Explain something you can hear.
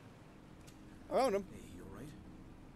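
A man asks a question calmly.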